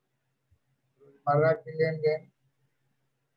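An elderly man speaks briefly into a microphone over an online call.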